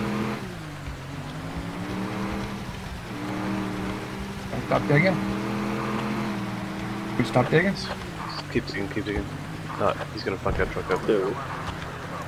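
A car engine hums steadily, its pitch rising and falling as it drives over rough ground.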